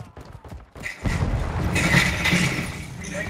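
Footsteps clang on metal stairs.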